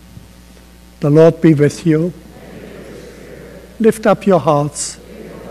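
An elderly man speaks slowly through a microphone in a large echoing hall.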